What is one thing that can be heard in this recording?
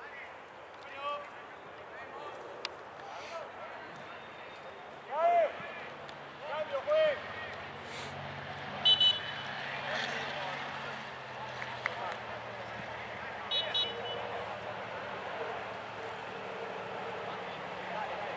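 Young men shout and call out across an open pitch outdoors.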